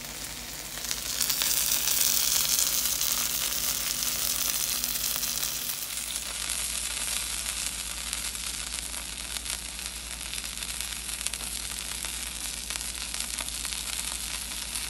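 Dough sizzles and crackles steadily on a hot griddle.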